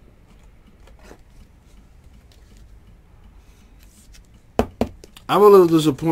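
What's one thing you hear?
Trading cards in plastic sleeves rustle and click as hands shuffle them.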